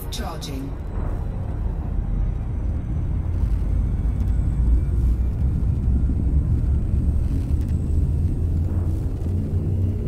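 A spacecraft engine rumbles deeply and steadily.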